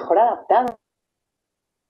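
A young woman speaks with animation through a microphone in an online call.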